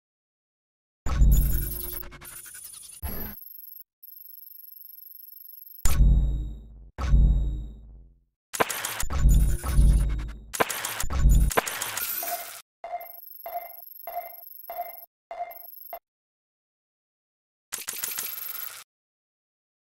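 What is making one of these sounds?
Game menu sounds whoosh and beep as selections change.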